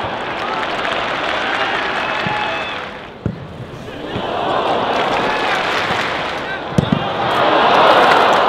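A large crowd cheers and shouts in a stadium.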